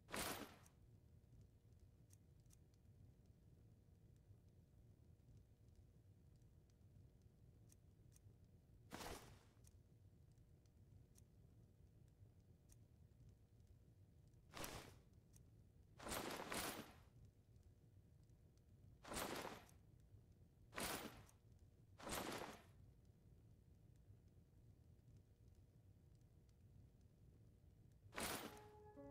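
Coins clink and jingle in short bursts.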